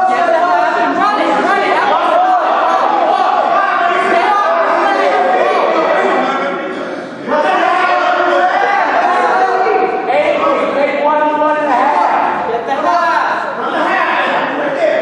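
A crowd of men and women shouts and cheers in a large echoing hall.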